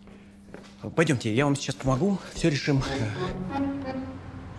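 A man speaks with surprise nearby.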